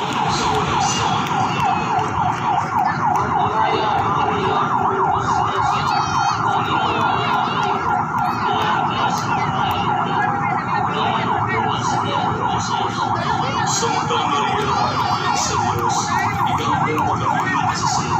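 A siren warbles rapidly and without pause.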